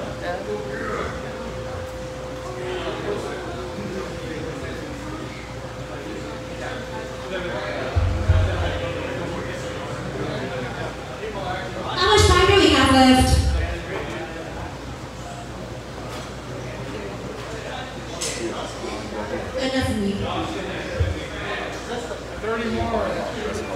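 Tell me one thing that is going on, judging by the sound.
An electric guitar plays through an amplifier.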